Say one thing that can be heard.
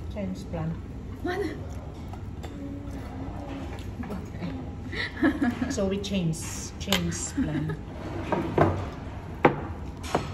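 Cutlery clinks on plates.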